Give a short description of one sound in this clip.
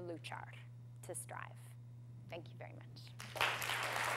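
A woman speaks briefly through a microphone in a large hall.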